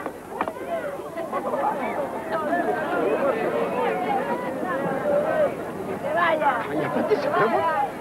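A crowd of onlookers talks loudly close by, outdoors.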